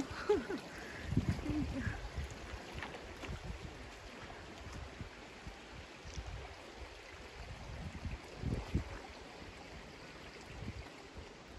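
A shallow stream trickles softly over stones.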